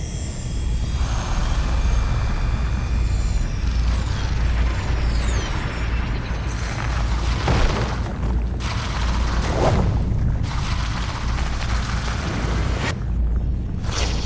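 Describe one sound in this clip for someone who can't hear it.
Electric energy crackles and whooshes loudly.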